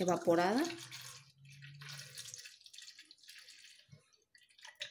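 Milk pours in a stream into a plastic blender jug.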